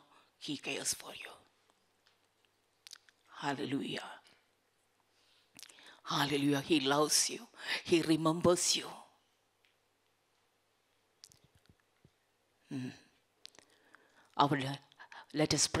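A middle-aged woman speaks calmly into a microphone, in bursts with pauses.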